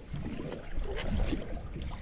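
A fishing reel clicks as it is cranked.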